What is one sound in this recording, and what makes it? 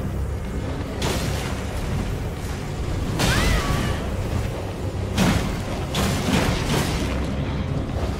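Heavy blows and whooshing swings crash in bursts.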